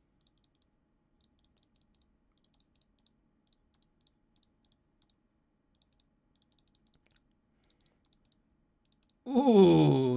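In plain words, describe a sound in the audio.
Small game clicks tick rapidly, one after another.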